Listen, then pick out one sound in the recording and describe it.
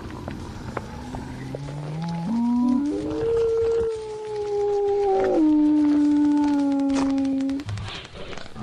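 A wolf-like beast howls in a long rising then slowly falling cry.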